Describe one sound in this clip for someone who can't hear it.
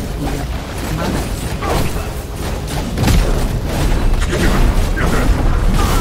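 Heavy blasts of fire roar and rumble.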